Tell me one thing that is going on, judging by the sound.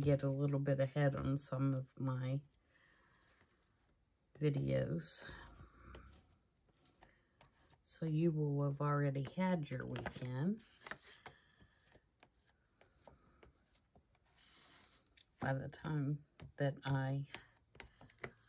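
An ink dauber taps and dabs softly on paper.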